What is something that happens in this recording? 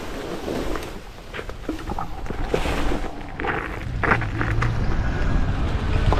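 Bicycle tyres crackle over gravel.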